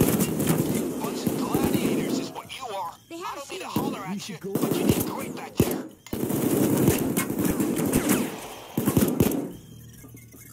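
Gunshots fire rapidly in a burst of heavy shooting.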